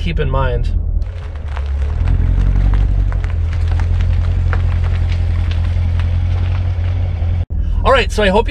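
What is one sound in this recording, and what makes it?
A sports car engine idles with a deep, steady rumble.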